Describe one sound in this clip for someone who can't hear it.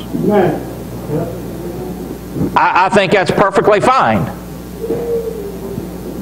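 A middle-aged man speaks with emphasis, heard in a room with some echo.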